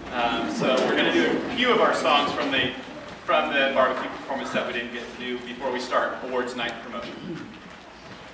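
A large choir of young voices sings together in an echoing hall.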